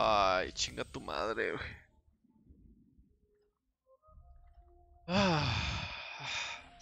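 A young man talks animatedly into a microphone.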